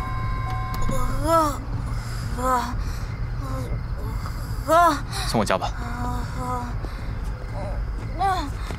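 A young woman speaks loudly in a slurred, drunken voice.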